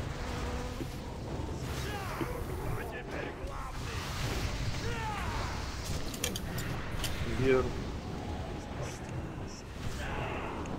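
Magic spells whoosh and chime in a busy fight.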